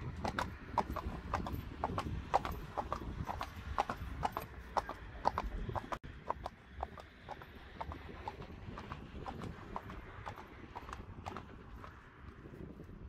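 A horse trots with shod hooves clopping on brick paving.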